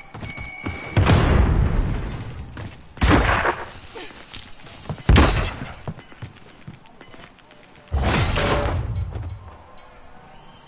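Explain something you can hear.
A gun fires loud blasts in short bursts.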